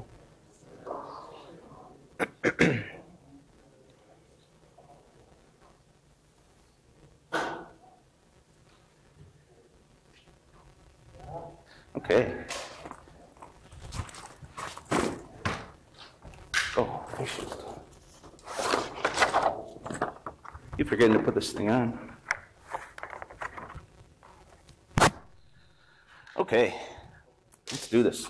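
A man speaks calmly through a microphone in a large echoing room, with long pauses.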